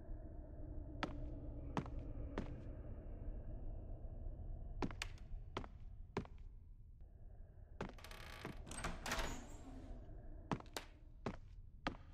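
Footsteps sound on a floor.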